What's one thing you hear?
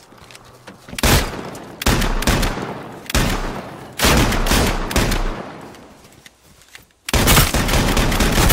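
A shotgun fires loudly several times.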